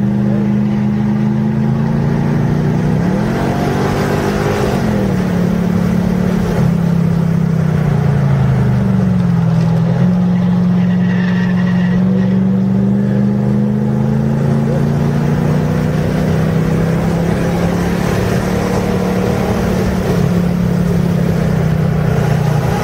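A car engine roars loudly from inside the cabin, its pitch rising and falling as the car speeds up and slows down.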